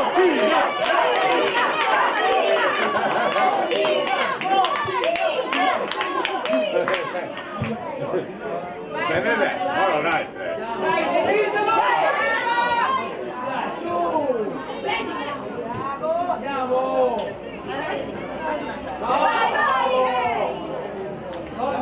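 Many voices of spectators shout and call out outdoors.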